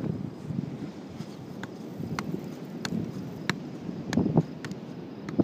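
A football thumps off a foot.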